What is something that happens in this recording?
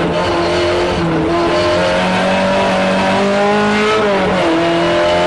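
A car engine roars loudly from inside the car, its pitch rising and falling with gear changes.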